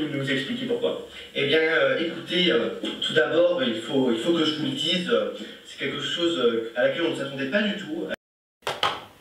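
A young man talks calmly through a television loudspeaker.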